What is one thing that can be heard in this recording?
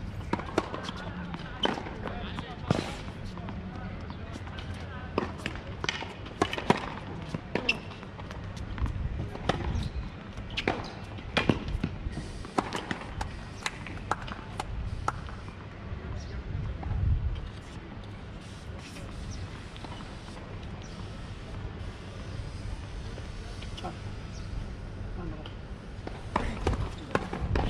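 Tennis balls are struck sharply with rackets, back and forth.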